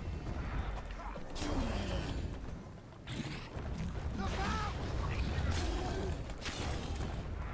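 Sword blows clash with sharp impacts.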